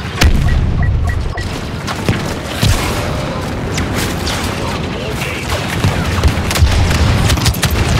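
An explosion booms and crackles with fire.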